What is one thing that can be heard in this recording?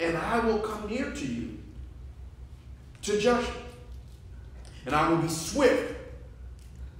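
A man speaks into a microphone in a slow, preaching manner, heard in a reverberant room.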